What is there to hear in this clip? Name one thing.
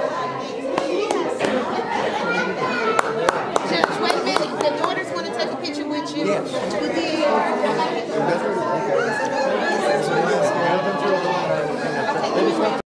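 Several men and women chat with each other nearby.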